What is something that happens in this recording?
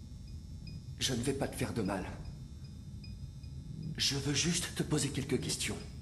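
A young man speaks calmly and softly.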